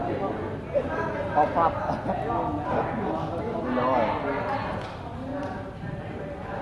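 A crowd of men and women chatters and calls out in a large open hall.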